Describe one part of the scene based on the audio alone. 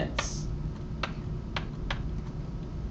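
A pen taps against a smart board.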